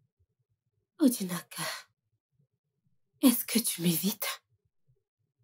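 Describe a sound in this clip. A woman speaks at close range.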